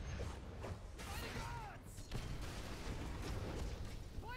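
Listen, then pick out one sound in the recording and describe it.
An explosion bursts with a fiery roar.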